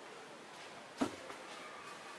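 A hand brushes against paper booklets with a short thump.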